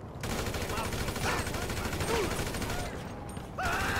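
A pistol fires shots.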